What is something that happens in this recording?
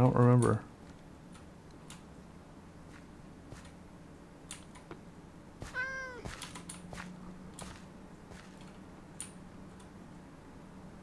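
Footsteps tap softly on a stone path.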